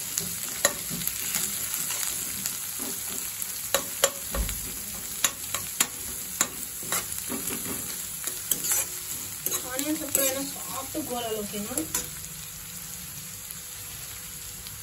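Onions sizzle softly in a hot pan.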